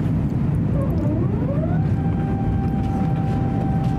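A jet engine's whine rises in pitch and then holds steady.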